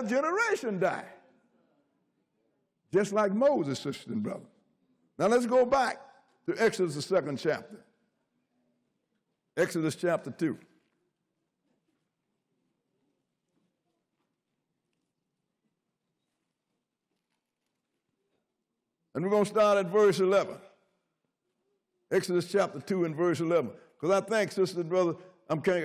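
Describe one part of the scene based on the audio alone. An elderly man speaks with feeling through a microphone, pausing often.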